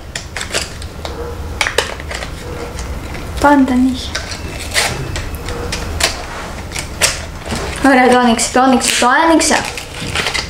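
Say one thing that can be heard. Plastic packaging crinkles and clicks as hands open it.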